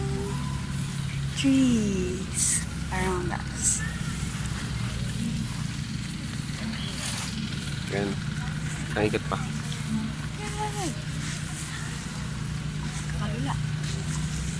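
A young woman speaks briefly close by.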